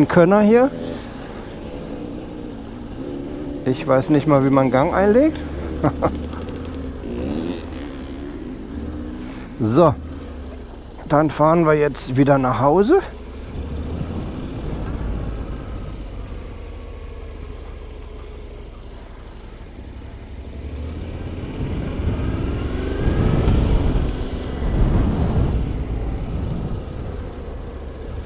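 A motorcycle engine hums and revs as it rides along.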